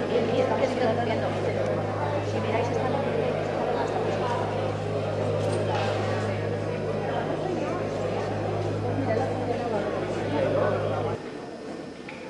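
An audience murmurs and chatters in a large hall.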